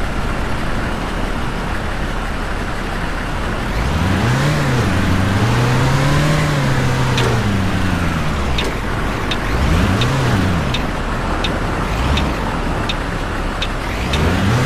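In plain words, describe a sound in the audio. A truck engine hums and revs up and down as the truck drives.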